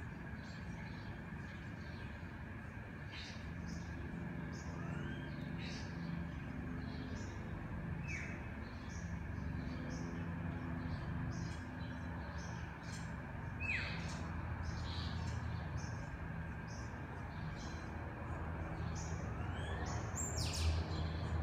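An air conditioner hums steadily nearby.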